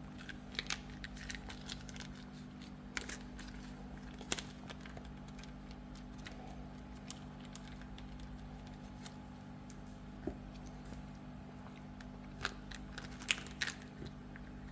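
A foil packet crinkles and rustles close by.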